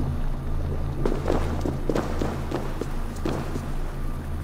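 Footsteps crunch on stone.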